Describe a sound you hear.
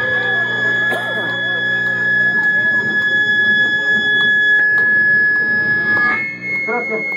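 An electric guitar rings out through an amplifier with a steady, high feedback whine.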